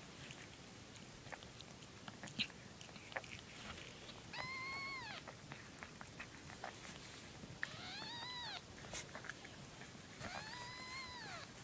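A cat chews and gnaws wetly at a piece of meat.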